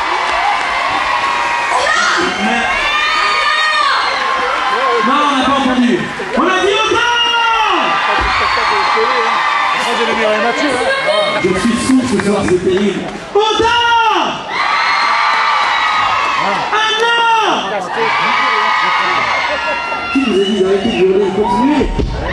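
A band plays live music loudly outdoors.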